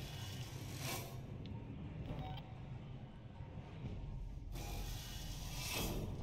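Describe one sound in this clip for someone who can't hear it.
A heavy metal door rumbles as it slides open.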